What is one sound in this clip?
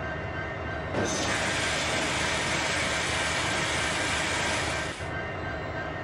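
Air brakes hiss loudly.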